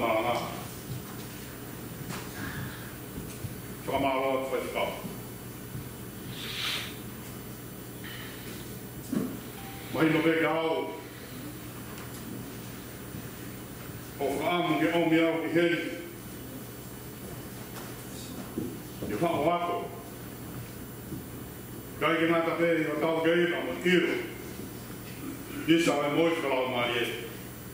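A man speaks slowly and calmly into a microphone, with long pauses, in an echoing hall.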